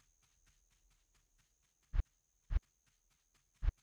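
A game menu clicks as its page changes.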